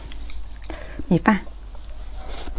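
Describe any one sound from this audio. A young woman speaks briefly close to a microphone.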